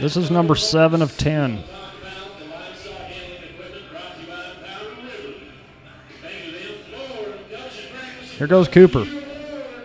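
Men talk among themselves in a large echoing arena.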